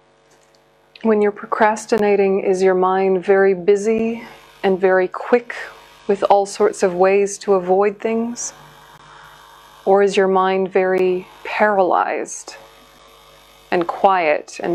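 A young woman chants slowly in a steady voice, close to a microphone.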